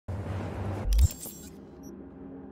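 An electronic whoosh sounds as a menu opens.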